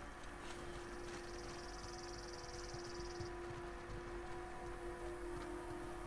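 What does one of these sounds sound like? Footsteps run over dry ground.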